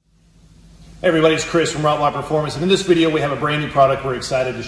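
A man speaks calmly and clearly, close up.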